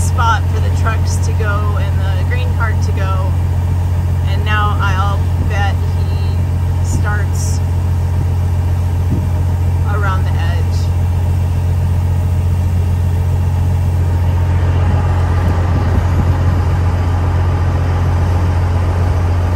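A vehicle engine drones steadily, heard from inside the cab.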